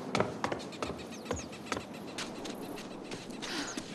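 A woman's footsteps thud on wooden porch steps.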